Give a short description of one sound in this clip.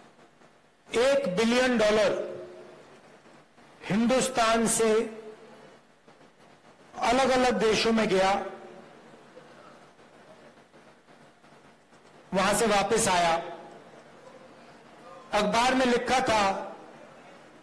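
A man gives a speech loudly through a microphone and loudspeakers, in short bursts with pauses.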